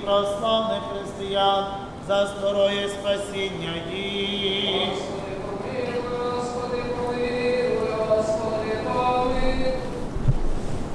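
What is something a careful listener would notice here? A man chants a prayer in a melodic voice in an echoing hall.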